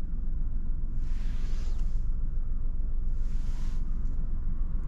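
Hands rub over a steering wheel as it turns.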